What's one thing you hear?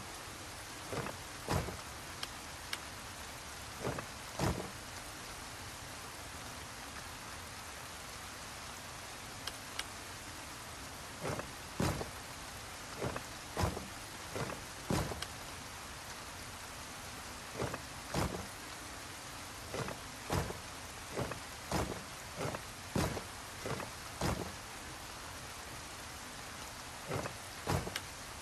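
Heavy pieces clunk and knock as they turn into place, again and again.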